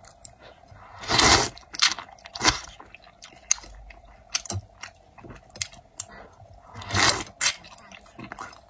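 A young woman slurps noodles loudly, close up.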